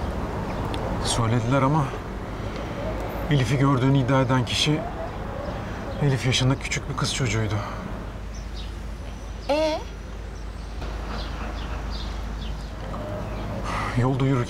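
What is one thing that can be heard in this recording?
A man speaks calmly and firmly, close by.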